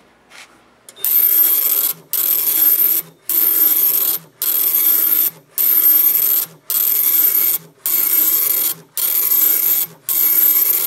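A line printer prints in loud, rapid bursts with short pauses between them.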